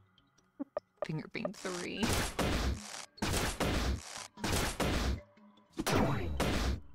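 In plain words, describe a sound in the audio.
Loud roaring attack effects burst again and again.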